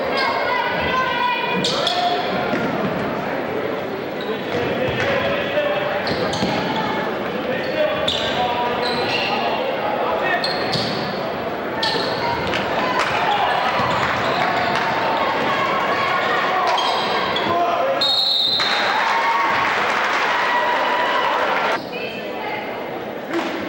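A crowd murmurs and cheers in an echoing gym.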